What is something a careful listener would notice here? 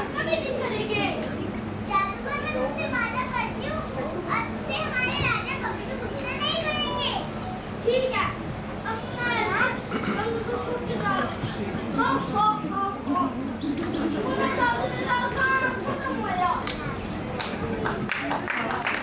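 Young children speak lines loudly in an echoing hall, heard through a microphone.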